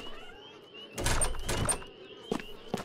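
A locked wooden door rattles as someone tries the handle.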